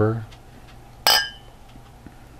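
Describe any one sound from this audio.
Two glasses clink together with a ringing tone.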